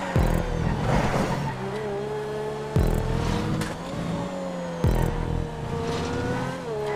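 A race car engine roars steadily, with sharp gear shifts and revving.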